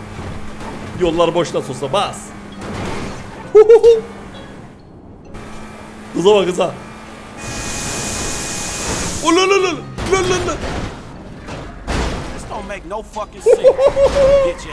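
A man talks and exclaims with animation close to a microphone.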